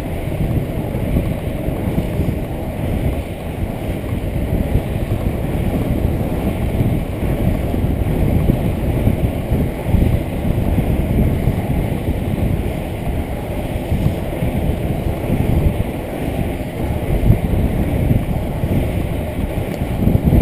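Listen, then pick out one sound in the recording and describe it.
Wind rushes and buffets past a moving skater.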